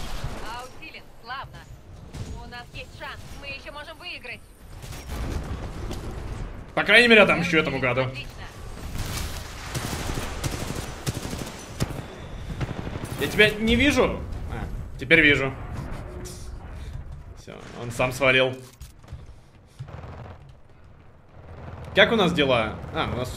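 Gunfire and explosions rattle and boom from a game.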